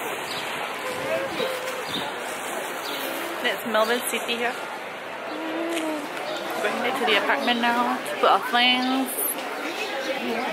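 A young woman talks casually close to the microphone.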